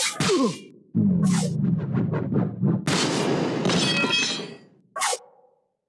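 A heavy blow lands with a deep booming impact.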